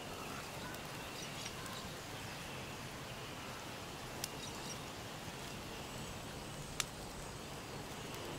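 Steady wind blows through a forest outdoors.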